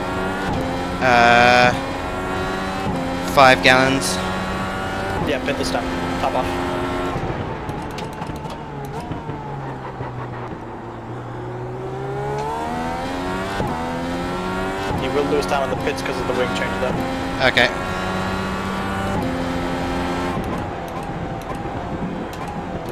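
A racing car engine revs high and shifts up and down through the gears.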